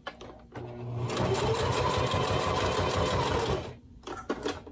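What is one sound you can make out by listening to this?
A sewing machine whirs rapidly as it stitches.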